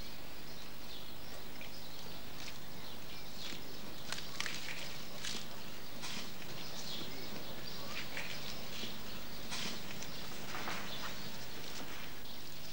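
A gorilla chews and crunches leafy stems.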